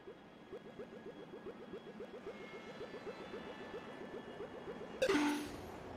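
Soft electronic blips repeat quickly and steadily as a game character moves.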